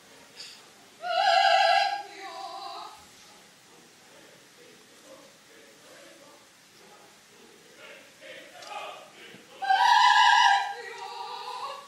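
A woman sings out in a high, strained voice.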